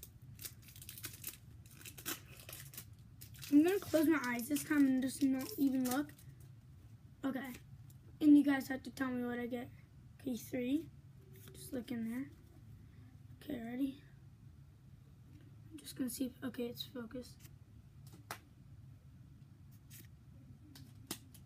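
Cardboard cards rustle and slide in a boy's hands.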